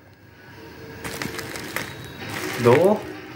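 A plastic package crinkles and rustles.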